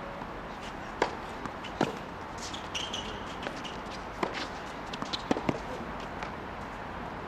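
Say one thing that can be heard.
Tennis balls are struck with sharp pops outdoors.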